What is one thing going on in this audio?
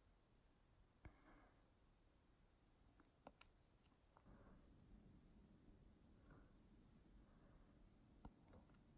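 A metal tool clicks faintly against skin.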